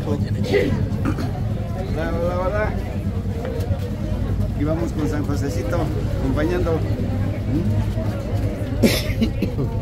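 An elderly man talks cheerfully close by.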